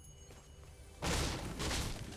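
A pickaxe strikes a wooden crate.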